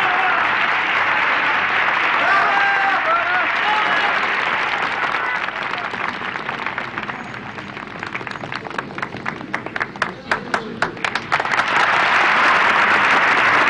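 A large audience applauds and cheers loudly in a big hall.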